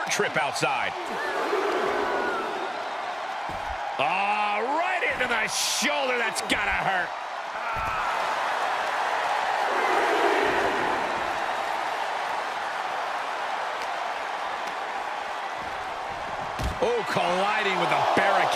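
A large crowd cheers loudly in an echoing arena.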